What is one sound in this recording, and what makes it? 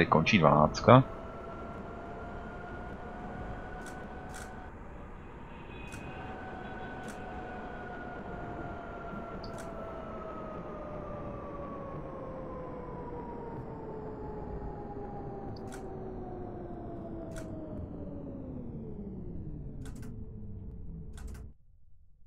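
A tram's electric motor whines steadily, then drops slowly in pitch as the tram slows to a stop.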